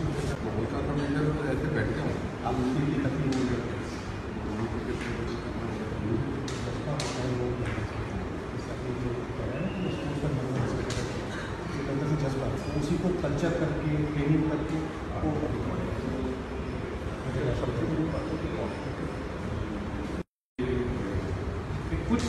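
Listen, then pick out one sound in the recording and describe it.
Several men murmur in the background.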